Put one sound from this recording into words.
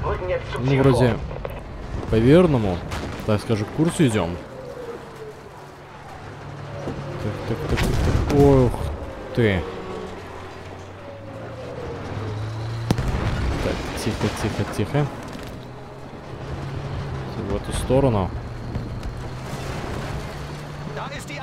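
Tank tracks clank and grind over rubble.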